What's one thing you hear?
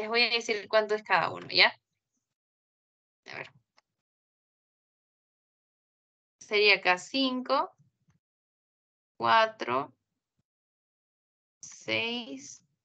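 A young woman speaks calmly into a microphone in short phrases with pauses.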